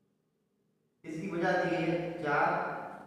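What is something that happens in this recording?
A man speaks clearly and steadily, close to a microphone.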